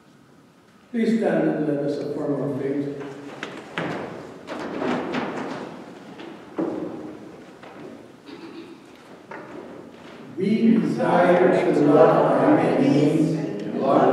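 A choir sings in an echoing hall.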